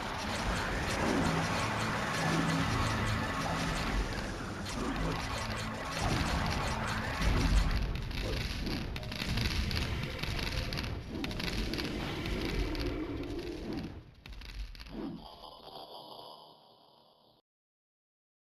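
Combat sound effects clash and burst in a video game.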